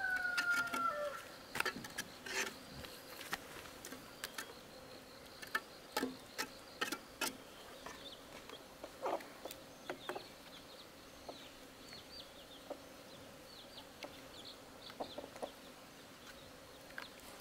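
A trowel scrapes and taps on wet cement.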